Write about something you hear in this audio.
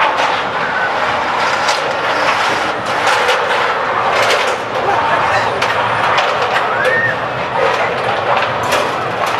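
A zip line pulley rolls and whirs along a steel cable.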